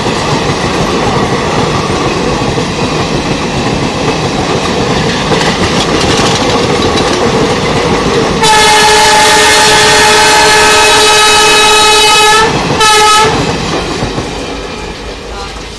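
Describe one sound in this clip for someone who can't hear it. A passing train rumbles and clatters loudly close by.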